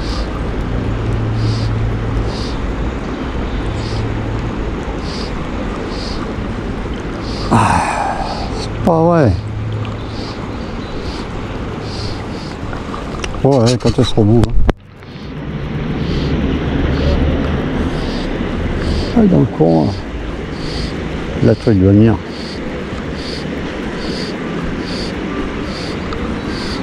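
Water flows steadily along a river, outdoors.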